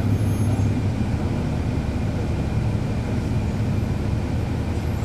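A bus engine idles with a low, steady rumble close by.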